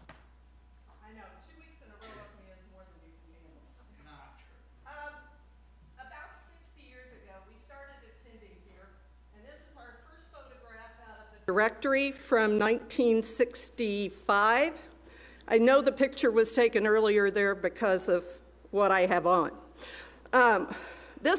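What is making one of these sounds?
An older woman speaks calmly into a microphone, quietly at first and then much louder.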